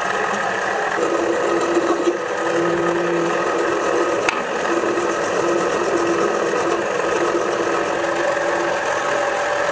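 A hand file rasps against spinning metal.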